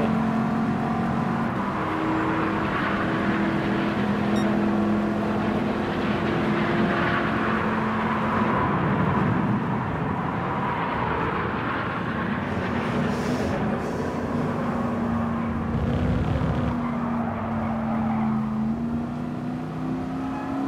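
A racing car engine roars at high revs, shifting gears.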